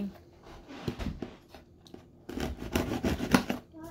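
A knife slices through packing tape.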